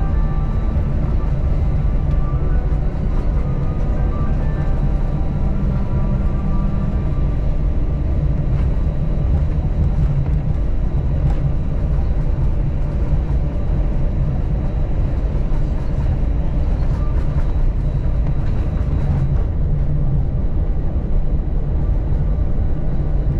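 Jet engines roar steadily from inside an airplane cabin.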